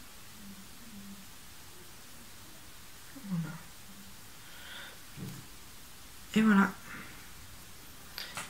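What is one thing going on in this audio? Small metal pieces click and clink as they are handled.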